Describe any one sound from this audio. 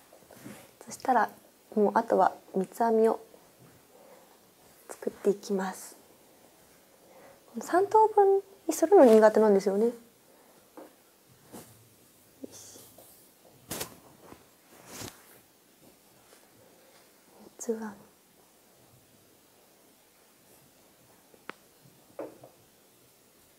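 A young woman speaks softly and calmly close to a microphone.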